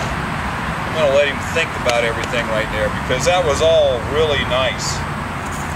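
A man talks calmly outdoors.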